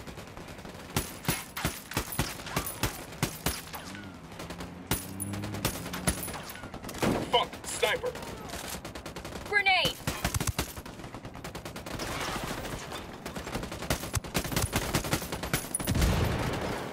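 A rifle fires repeated sharp shots.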